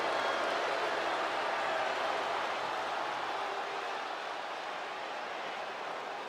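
A large crowd cheers and roars in a big echoing arena, then slowly fades.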